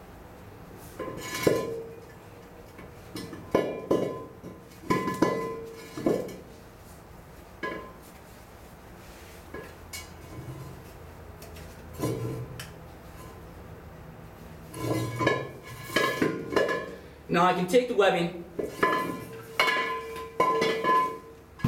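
Metal air cylinders clank and ring against each other and the floor.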